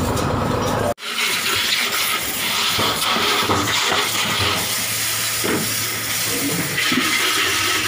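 Water sprays hard from a hose and splashes.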